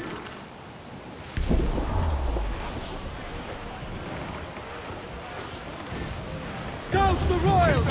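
Waves splash against a wooden ship.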